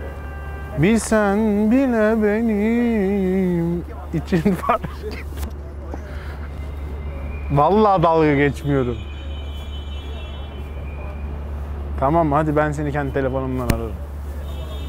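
A young man talks animatedly into a phone close by.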